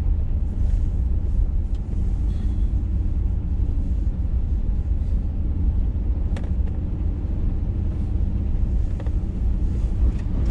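Tyres crunch and rattle over a bumpy dirt road.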